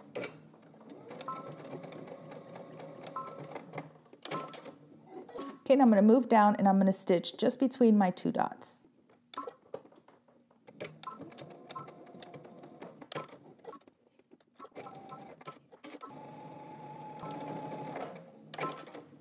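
A sewing machine whirs and stitches steadily.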